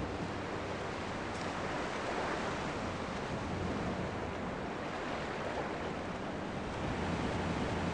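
Waves wash softly onto a shore nearby.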